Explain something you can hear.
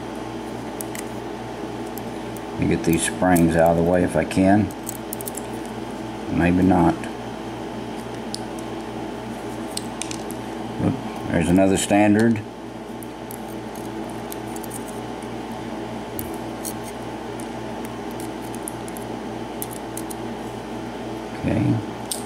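Small metal picks click and scrape inside a lock.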